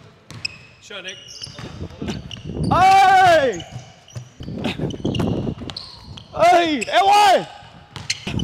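A basketball bounces on the court with hollow thuds.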